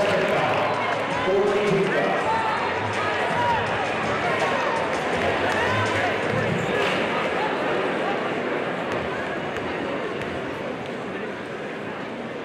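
A large crowd cheers and shouts in a big echoing arena, slowly quieting down.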